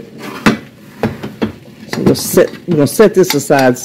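A wire whisk clicks and scrapes against a metal pan.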